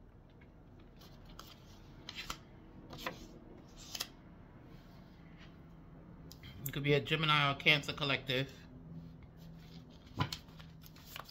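Paper cards rustle and flick as they are shuffled by hand.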